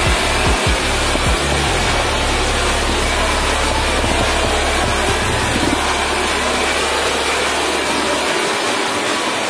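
A pressure washer hisses steadily as it sprays a car.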